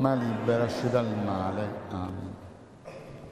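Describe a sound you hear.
A man sings slowly in a large echoing hall, then falls silent.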